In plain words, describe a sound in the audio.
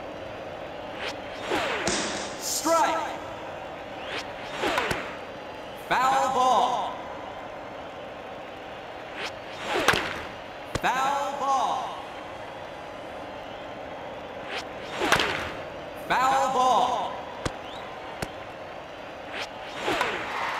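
A pitched ball whooshes past several times.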